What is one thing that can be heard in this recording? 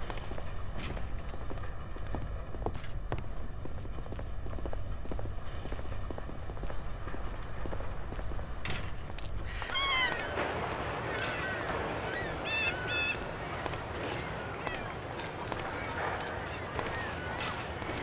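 Footsteps walk steadily on hard ground.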